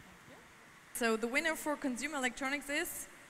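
A woman speaks with animation into a handheld microphone over loudspeakers.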